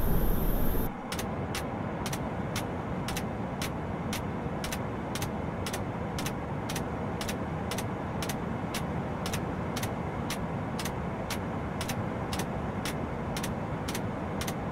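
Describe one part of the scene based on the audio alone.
Tyres thump rhythmically over runway joints.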